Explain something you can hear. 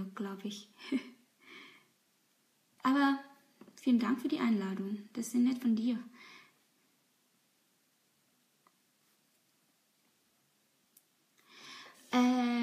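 A young woman talks calmly and close by, pausing now and then.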